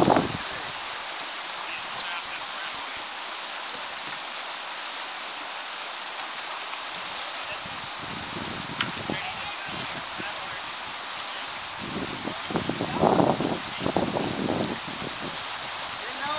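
A river rushes and splashes over rapids.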